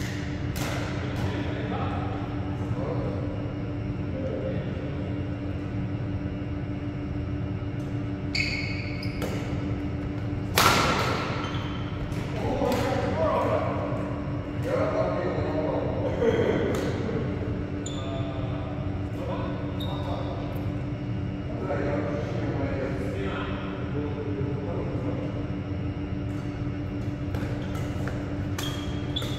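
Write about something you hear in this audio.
Rackets strike a shuttlecock with sharp pops, echoing in a large hall.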